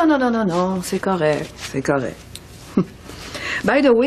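A middle-aged woman speaks.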